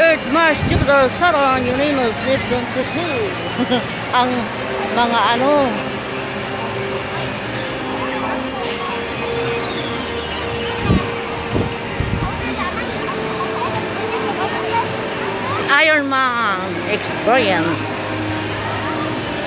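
People chatter in the distance outdoors.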